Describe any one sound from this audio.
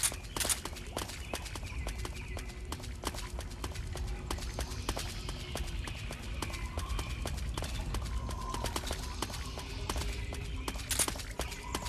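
A soldier's footsteps rustle through tall grass.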